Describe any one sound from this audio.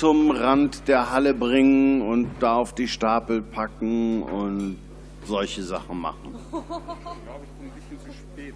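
A man speaks loudly and animatedly close by in a large echoing hall.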